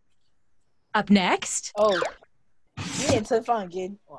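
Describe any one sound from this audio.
A young woman speaks with animation over an online call.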